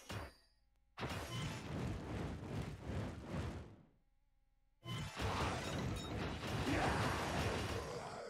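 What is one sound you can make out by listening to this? Fireballs roar and explode.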